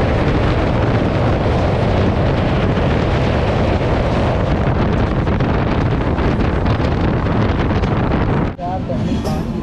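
Wind roars past an open train window.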